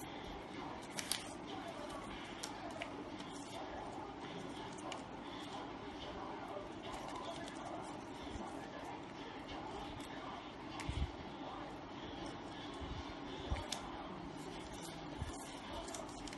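Fingers press and crease paper with soft taps.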